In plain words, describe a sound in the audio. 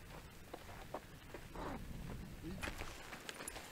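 A man's footsteps crunch on gravel outdoors.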